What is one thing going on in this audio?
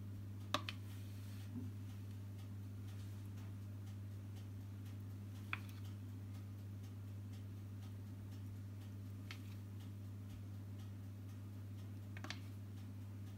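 A spoon clinks lightly against a glass dish.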